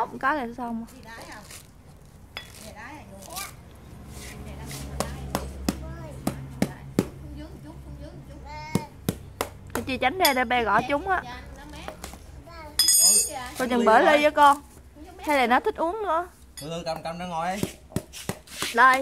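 A knife blade knocks and chops against a coconut shell.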